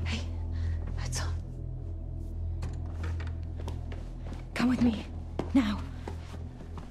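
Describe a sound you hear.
A young woman speaks quietly and urgently.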